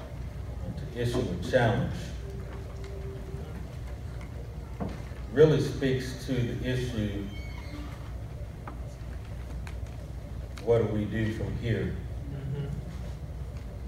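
A man speaks slowly and calmly into a microphone, with long pauses.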